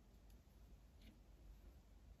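A paintbrush taps against a glass jar.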